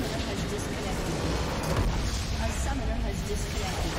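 A structure explodes with a deep boom.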